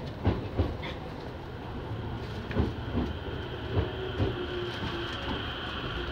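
An electric commuter train rolls in on the next track.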